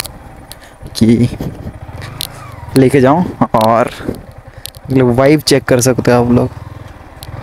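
A motorcycle engine revs up in short bursts.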